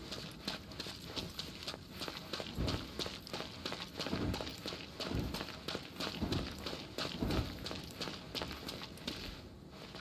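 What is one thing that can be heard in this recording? Footsteps tap quickly on stone.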